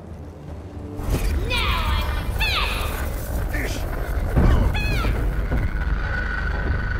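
Punches and kicks thud and whoosh in a brawl.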